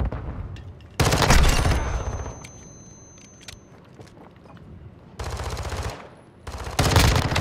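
A rifle fires in rapid bursts, loud and close.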